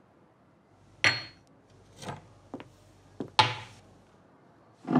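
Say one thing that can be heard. Cups and glass clink on a metal tray.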